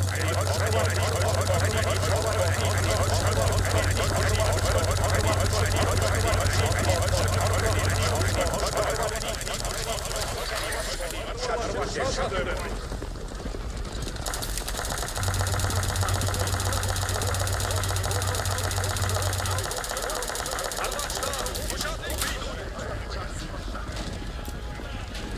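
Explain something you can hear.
A large troop of soldiers marches with a busy tramping of feet and clinking gear.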